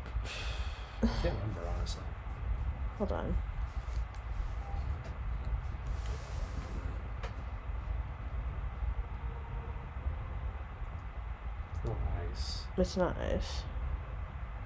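A man speaks casually into a nearby microphone.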